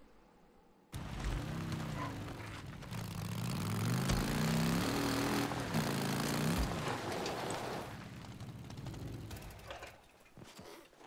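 A motorcycle engine revs and roars as it rides.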